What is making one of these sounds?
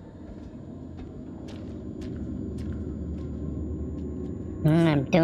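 Slow footsteps thud on a hard floor.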